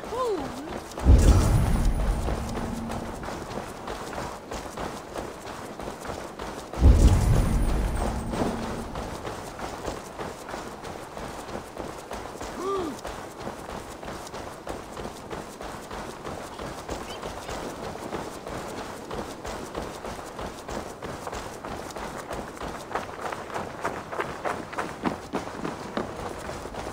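Footsteps crunch quickly on snow and frozen ground.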